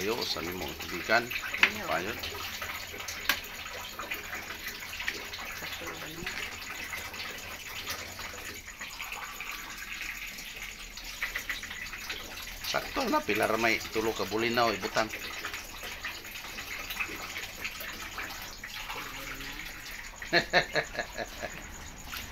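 Vegetables simmer and sizzle in a pan.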